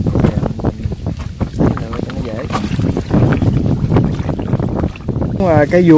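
Water splashes as a bucket is lifted from a river.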